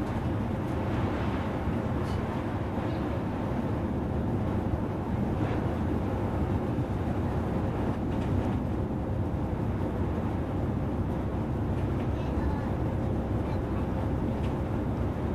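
A bus engine drones steadily from inside the cabin.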